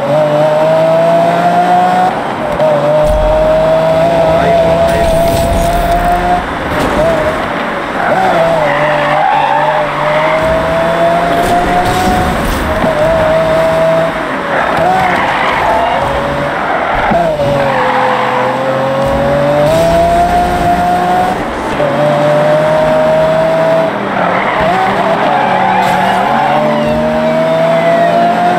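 A car engine roars at high revs, climbing in pitch and dropping with each gear change.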